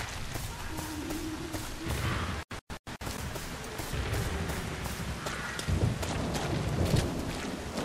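Footsteps run over soft ground.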